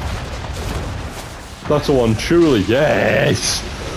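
Cannons fire with deep booms.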